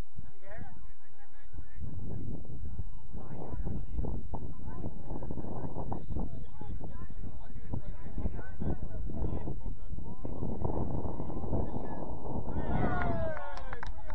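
Young players shout to each other far off across an open field.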